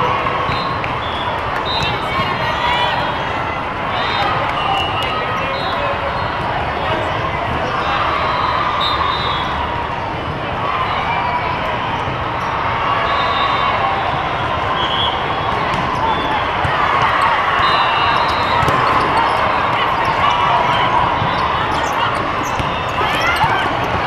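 A large crowd murmurs and chatters throughout a big echoing hall.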